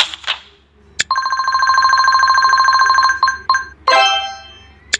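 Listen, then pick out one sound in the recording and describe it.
Game sound effects chime brightly as cards are chosen.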